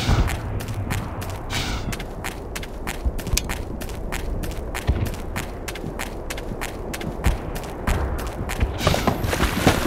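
Footsteps crunch on gravelly sand at a steady walking pace.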